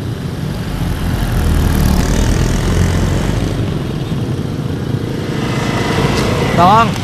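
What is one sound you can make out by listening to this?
A motorbike engine hums past.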